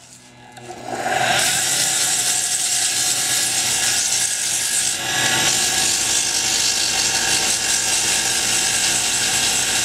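Sandpaper hisses against spinning hardwood on a lathe.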